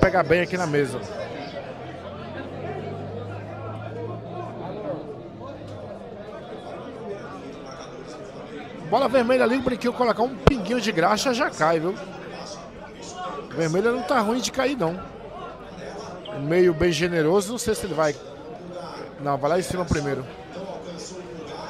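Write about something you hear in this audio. A crowd of men talks and murmurs nearby.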